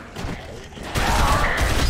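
A gun fires a rapid burst of loud shots.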